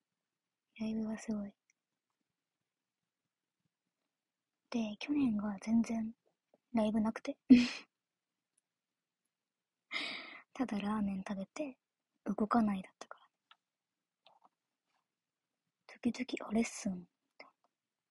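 A young woman speaks softly and casually in short bursts, close to a microphone.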